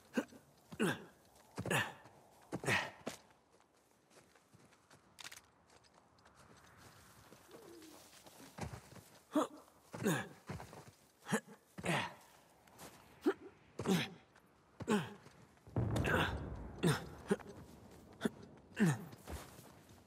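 Footsteps thud and crunch at a steady walking pace.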